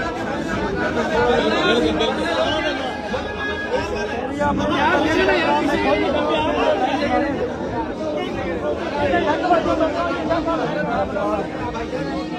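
A man speaks with animation close to several microphones.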